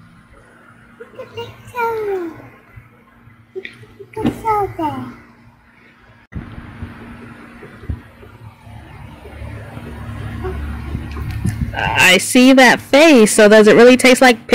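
A young girl speaks and exclaims loudly close by.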